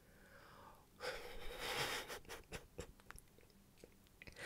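A young man laughs softly into a microphone.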